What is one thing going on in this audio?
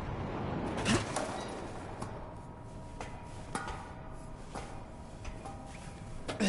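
Hands clank on metal ladder rungs.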